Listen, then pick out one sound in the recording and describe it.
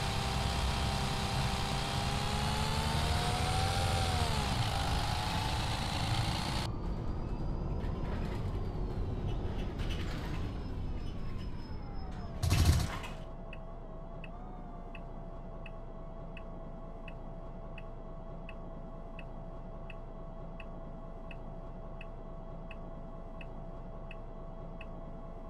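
A bus engine hums loudly, dropping in pitch as the bus slows, then idles steadily.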